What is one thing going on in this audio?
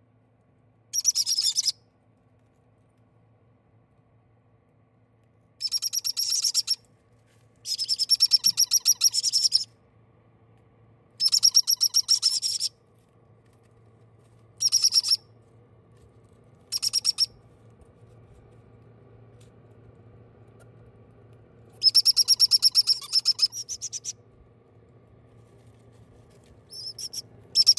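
Baby parrot chicks give begging calls in rapid buzzy bursts.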